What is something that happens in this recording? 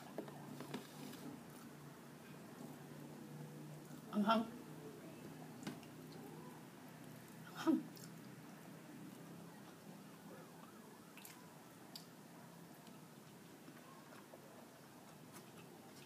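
Fingers squish and scoop soft rice on a plate.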